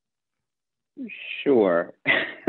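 A man laughs and speaks over an online call.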